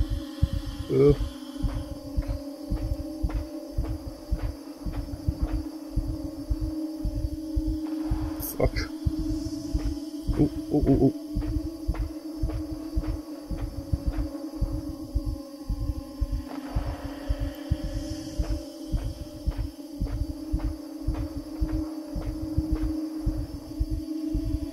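Many footsteps march in a steady, heavy rhythm.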